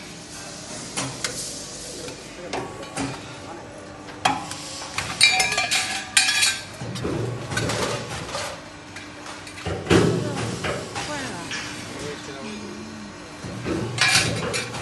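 Metal parts clank and bang sharply now and then.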